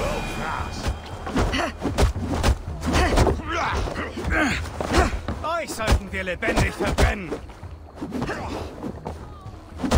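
Fists thud in a brawl.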